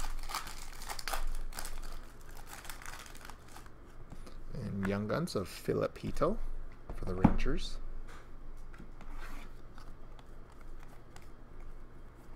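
Trading cards rustle and flick against each other in hand.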